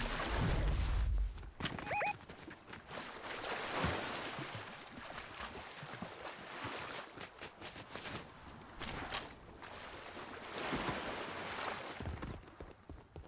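Water splashes and swishes steadily as something wades and slides through it.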